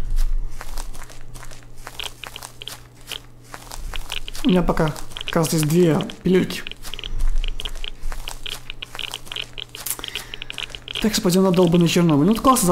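Footsteps swish and crunch through tall grass at a steady walking pace.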